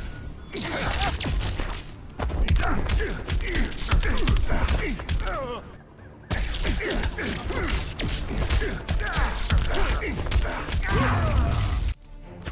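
Electric blasts crackle and zap.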